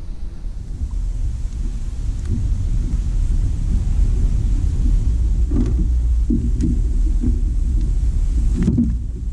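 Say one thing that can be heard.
Water splashes and sloshes against a boat.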